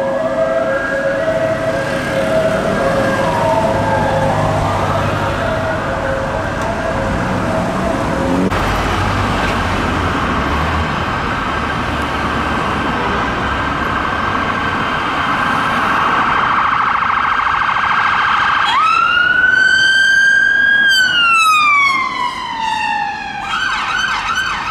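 A police siren wails, rising and falling.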